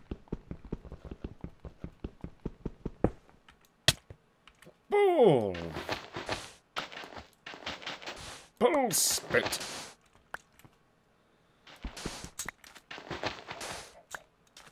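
Sand and stone crunch as blocks are dug out with quick, repeated taps.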